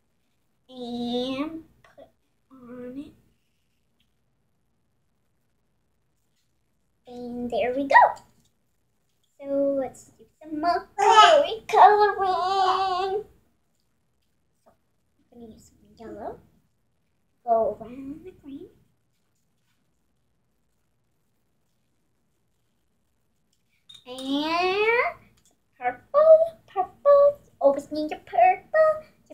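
A young girl talks and sings playfully close by.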